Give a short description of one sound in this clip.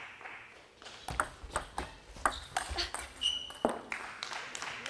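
A ball clicks back and forth across a table tennis table.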